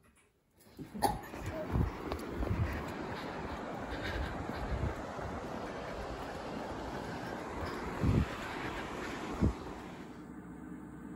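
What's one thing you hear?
Wind blows outdoors against a microphone.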